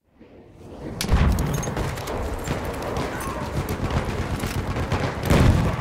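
Explosions boom and rumble close by.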